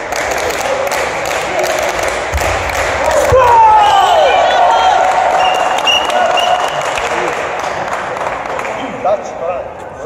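A crowd cheers and shouts in a large echoing hall, then quiets down.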